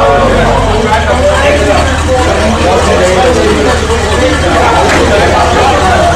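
A large car engine idles with a low, steady rumble.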